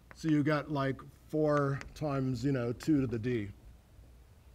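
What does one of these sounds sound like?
A man speaks with animation in a lecture voice, heard from a distance.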